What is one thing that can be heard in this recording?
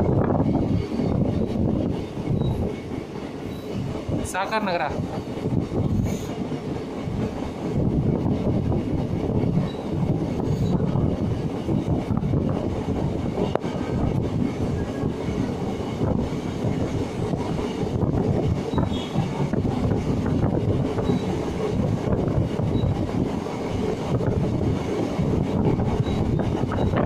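A train rumbles steadily along the tracks.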